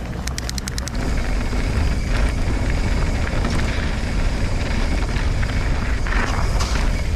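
Bike tyres crunch and rattle over loose gravel.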